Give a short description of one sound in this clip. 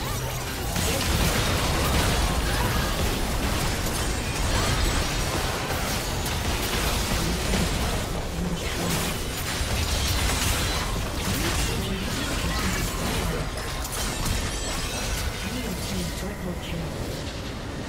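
Game spell effects crash and explode in a fierce battle.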